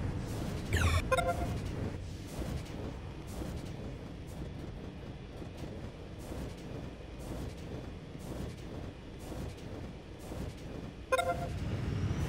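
A short electronic chime sounds as a structure is placed.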